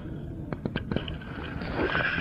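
A paddle dips and splashes in the water.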